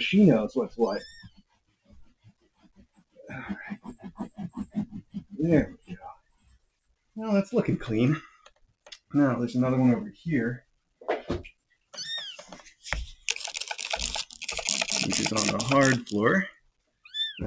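A kitten meows in a high, thin voice.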